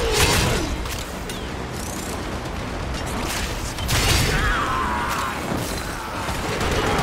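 Weapons fire and blasts crackle in a video game battle.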